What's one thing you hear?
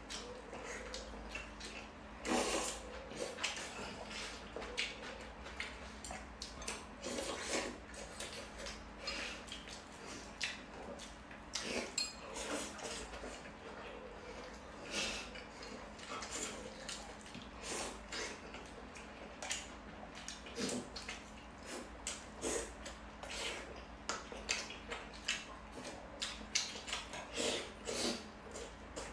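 A young woman slurps and chews food close by.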